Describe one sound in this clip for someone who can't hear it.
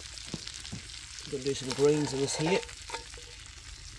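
A metal pot lid clanks against a pot.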